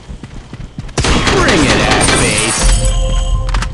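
Gunfire rattles in a rapid burst.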